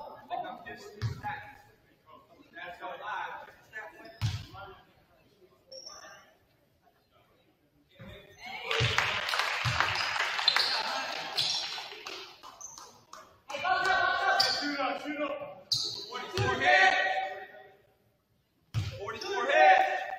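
A basketball bounces with dull thuds on a hard court in an echoing gym.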